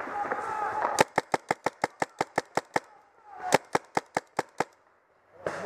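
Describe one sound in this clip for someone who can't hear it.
A paintball marker fires rapid bursts of sharp pops close by.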